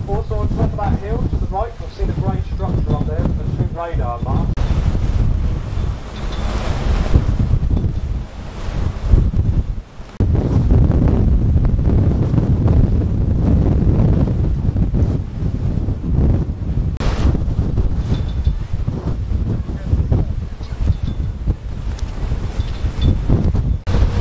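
Strong wind buffets and rumbles outdoors.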